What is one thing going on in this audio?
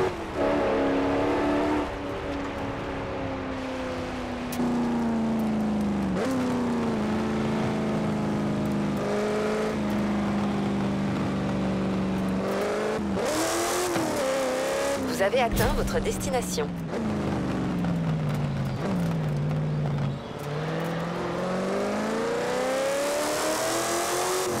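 A car engine revs and changes gear as it races.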